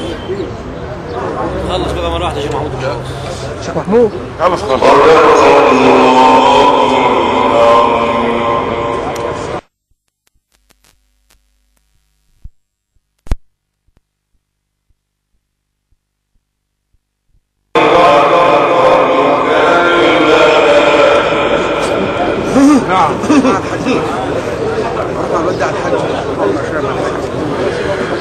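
A middle-aged man chants a long melodic recitation loudly through a microphone and loudspeakers.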